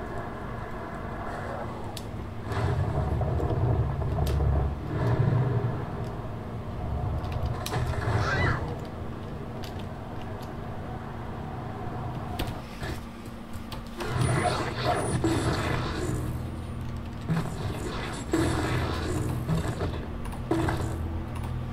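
Keys and a mouse click softly.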